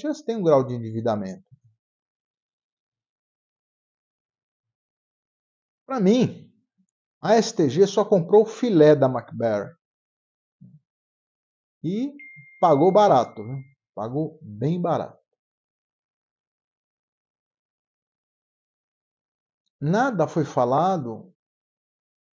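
A middle-aged man talks calmly into a microphone, close by, in short bursts with pauses.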